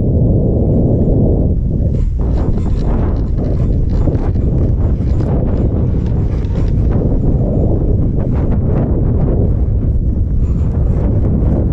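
Skis scrape and hiss over snow.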